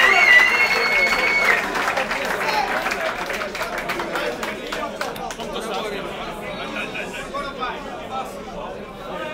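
A crowd murmurs and cheers in a large echoing room.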